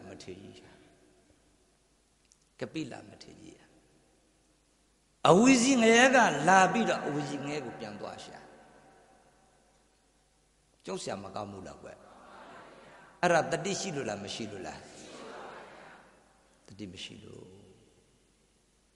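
A middle-aged man speaks into a microphone with animation, in bursts with pauses, in an echoing space.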